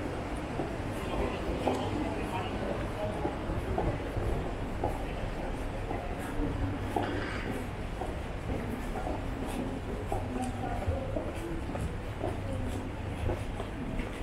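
People chatter in the distance.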